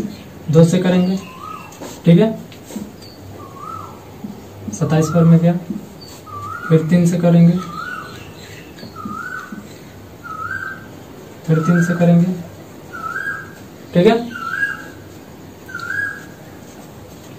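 A marker squeaks on a whiteboard in short strokes.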